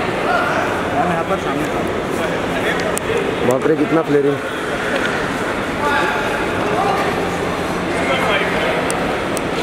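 Luggage trolley wheels roll across a hard floor.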